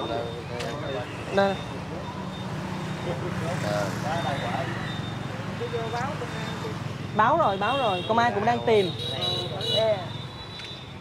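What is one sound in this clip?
Several men talk together close by, outdoors.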